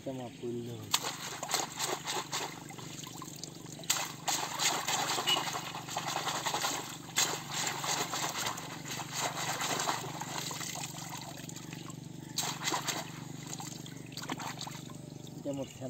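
Water splashes and mud squelches as hands dig in a shallow flooded field.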